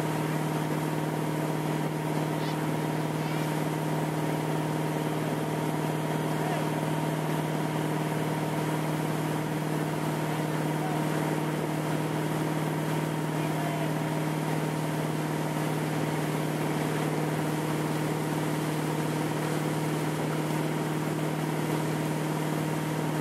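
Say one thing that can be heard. Water splashes and churns in a boat's wake.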